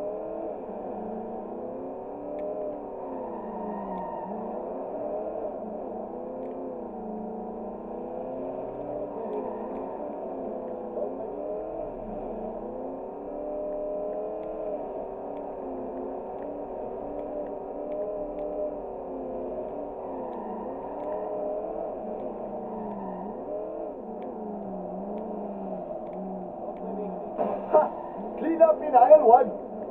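A car engine hums and revs steadily, rising and falling in pitch.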